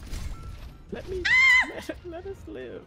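A young woman screams loudly.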